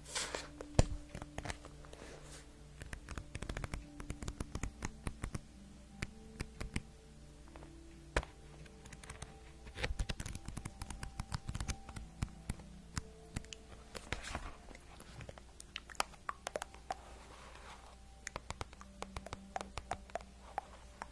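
A young woman whispers softly and closely into a microphone.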